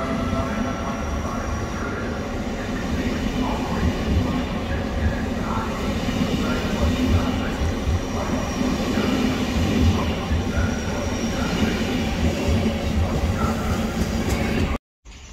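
Train wheels clatter rhythmically over rail joints.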